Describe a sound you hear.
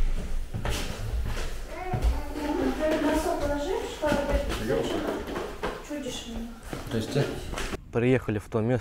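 Young children chatter and call out nearby in an echoing room.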